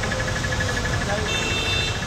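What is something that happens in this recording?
A car drives by on a wet road.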